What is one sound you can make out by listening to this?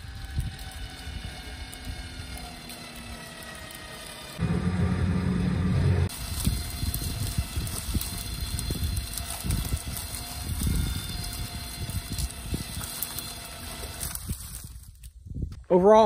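A small utility vehicle's engine idles steadily.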